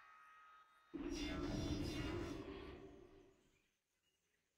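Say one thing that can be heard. A teleport spell whooshes and hums.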